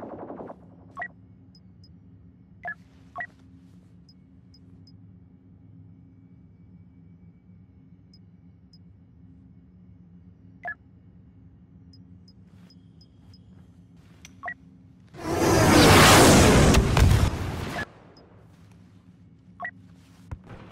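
Menu clicks tick softly.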